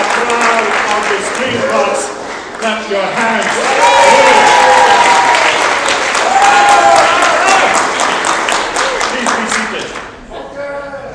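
A congregation sings loudly and joyfully in an echoing hall.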